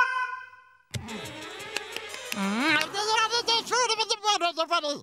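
A small cartoon penguin babbles in a high, squeaky voice.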